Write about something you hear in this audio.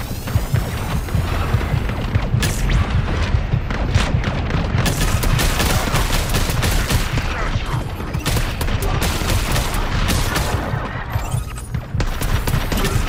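Energy blasts boom and thud.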